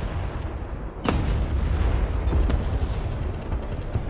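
A large explosion booms close by.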